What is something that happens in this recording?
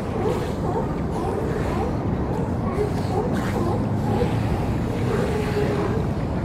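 A crowd of sea lions barks and bellows close by.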